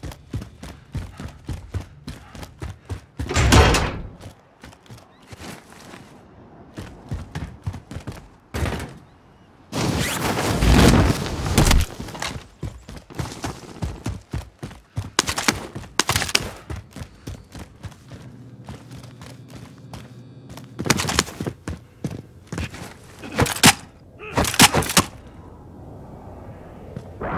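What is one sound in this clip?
Quick footsteps run across hard floors and ground.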